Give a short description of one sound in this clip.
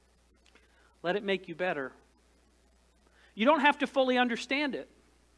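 A man speaks into a microphone in short phrases with pauses.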